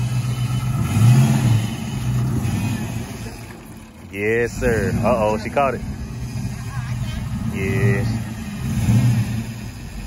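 A car engine revs briefly.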